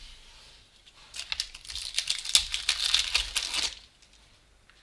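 Trading cards rustle and slide against each other in a hand.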